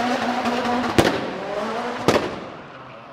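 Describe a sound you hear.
A car's exhaust pops sharply.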